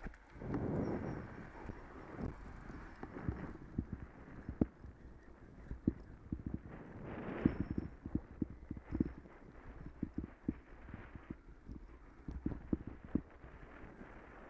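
Bicycle tyres crunch and rattle over a gravel path.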